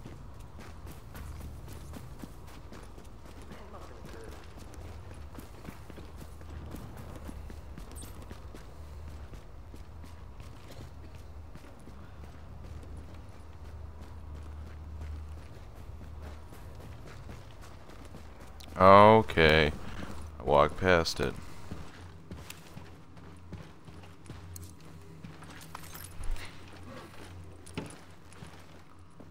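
Footsteps crunch on snow and debris.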